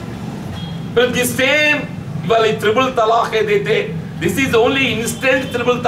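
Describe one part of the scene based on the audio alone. An elderly man speaks forcefully into a nearby microphone.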